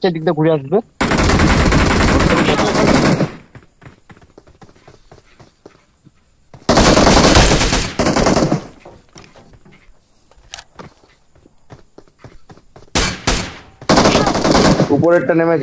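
Automatic gunfire rattles in long bursts.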